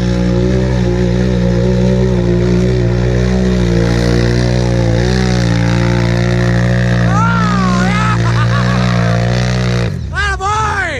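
A quad bike engine roars and revs close by.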